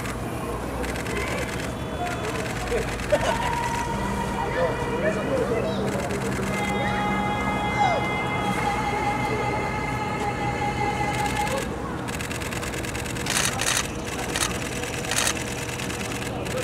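Men and women in a crowd chatter nearby outdoors.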